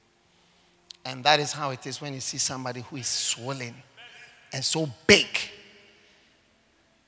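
A man speaks with animation through a microphone, echoing in a large hall.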